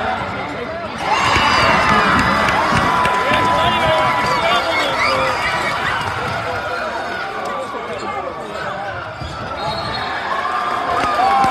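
A crowd bursts into loud cheering and roaring.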